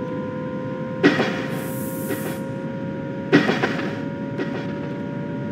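Train wheels clunk sharply over rail joints.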